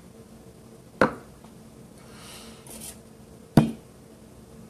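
A bottle knocks down hard onto a table.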